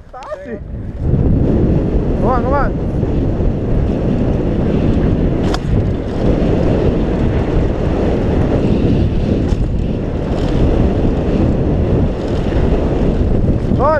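Wind rushes loudly past the rider at speed.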